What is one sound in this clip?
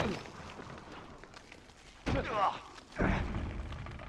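A person lands heavily in deep snow.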